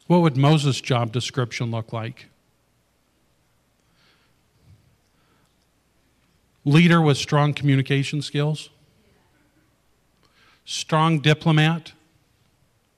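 A man speaks into a microphone in a calm, measured voice, with pauses between phrases.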